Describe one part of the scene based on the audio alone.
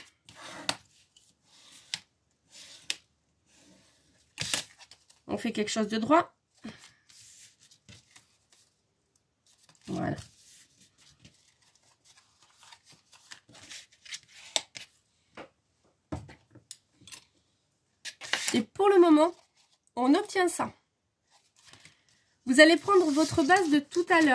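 Card stock rustles and taps against a table.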